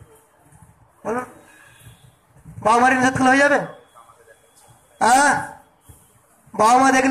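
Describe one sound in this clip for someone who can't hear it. A man sings drawn-out phrases through a microphone, in short bursts with pauses between.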